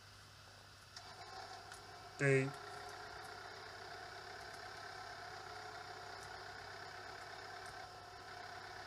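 An excavator engine runs with a low steady drone.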